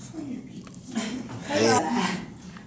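A woman speaks with a smile.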